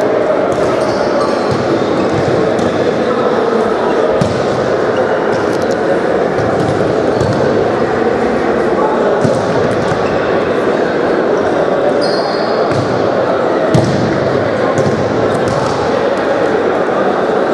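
A ball thuds as players kick it in a large echoing hall.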